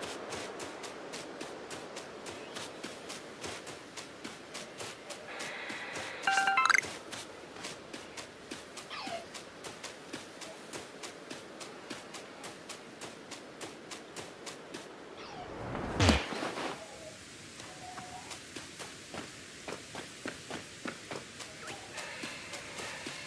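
Footsteps patter quickly and evenly over grass.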